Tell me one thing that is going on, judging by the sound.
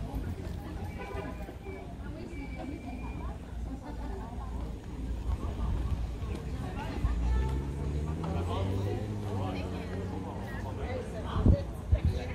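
Men and women chat at outdoor tables nearby.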